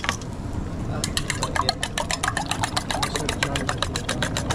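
A fork whisks eggs rapidly in a metal bowl.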